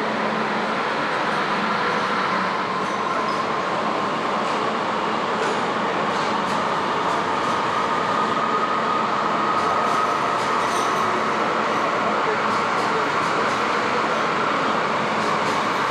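A train rolls slowly past with a steady rumble and hiss.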